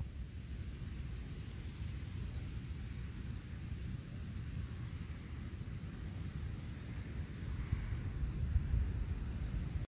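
Wind gusts outdoors with a low, steady rumble.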